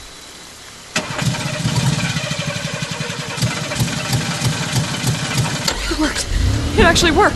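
A car engine starts and runs with a steady rumble.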